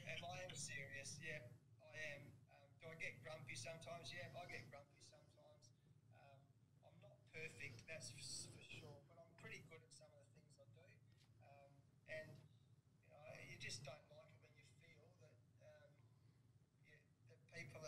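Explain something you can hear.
A middle-aged man talks steadily into a close microphone.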